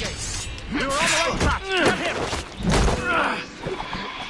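Blows land with heavy thuds in a scuffle.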